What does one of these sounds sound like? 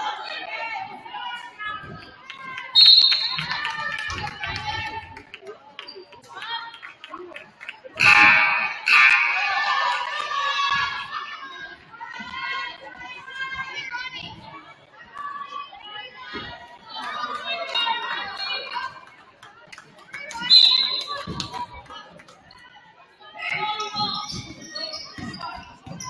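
Young women shout and call out on a court in a large echoing gym.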